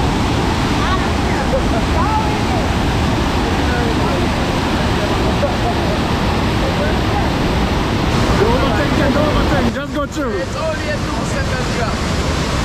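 A waterfall roars loudly and steadily.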